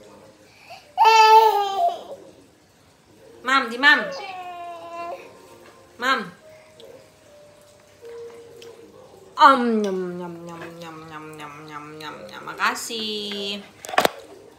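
A baby squeals and babbles loudly close by.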